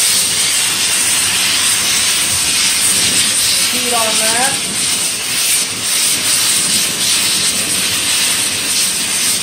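A gas torch flame roars steadily and loudly.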